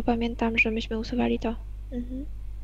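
A young woman sings short, quick repeated notes over an online call.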